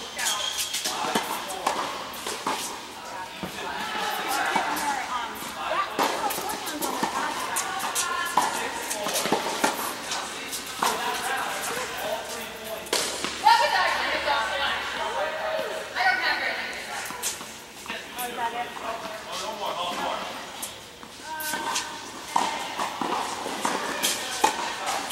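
Young women talk on and off across a court.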